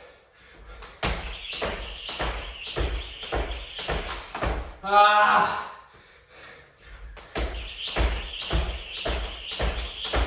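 Feet thump lightly on the floor with each jump.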